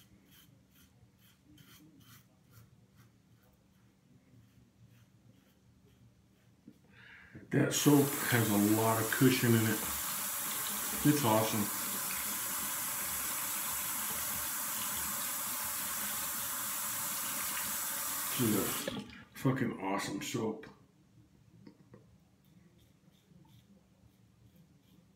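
A safety razor scrapes through stubble in short strokes.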